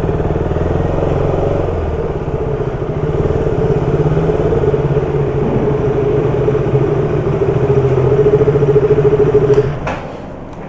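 A motorcycle engine runs with a steady low rumble, then cuts off.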